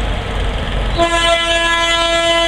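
A locomotive horn sounds loudly and steadily.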